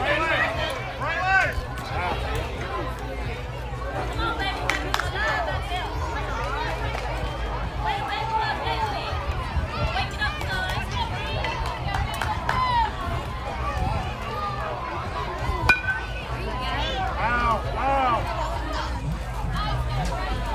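Young children shout and cheer from nearby.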